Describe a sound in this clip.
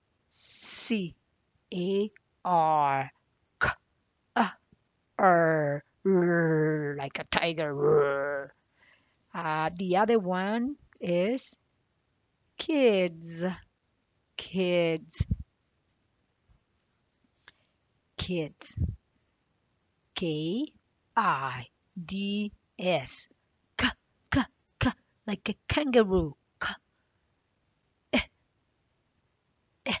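A woman speaks calmly and clearly close by.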